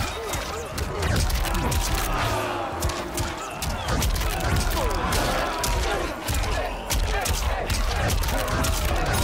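Men grunt and shout as they strike.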